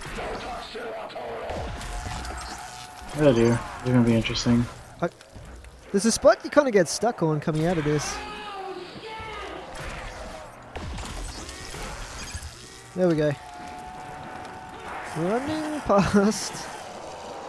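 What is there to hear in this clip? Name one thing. An energy weapon fires with sharp electric blasts.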